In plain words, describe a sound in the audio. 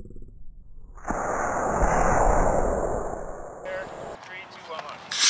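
A model rocket motor ignites with a loud rushing roar that fades as the rocket climbs away.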